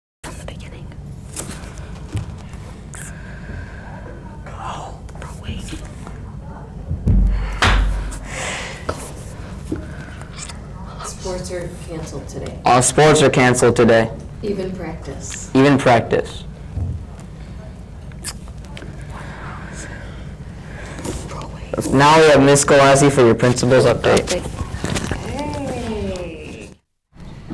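A teenage girl speaks calmly into a microphone.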